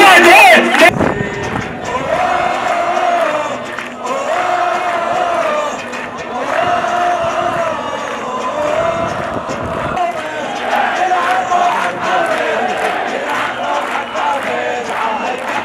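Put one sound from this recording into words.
A large crowd chants along in unison.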